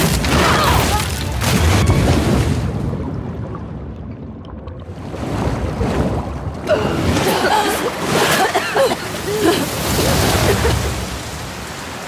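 Water churns and splashes loudly.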